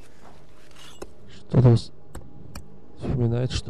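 A pickaxe strikes hard ice with sharp knocks.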